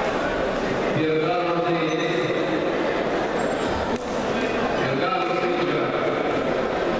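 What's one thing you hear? A man calls out in a large echoing hall.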